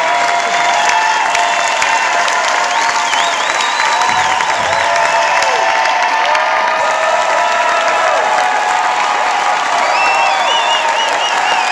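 A large audience claps loudly in a big hall.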